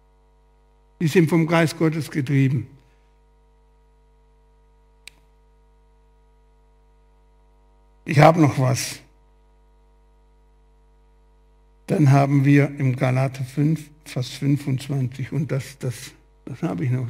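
A middle-aged man speaks calmly through a microphone, with long pauses.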